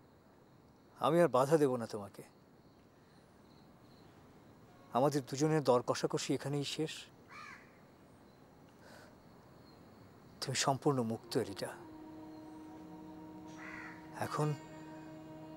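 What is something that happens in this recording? A middle-aged man speaks in a low, serious voice, close by.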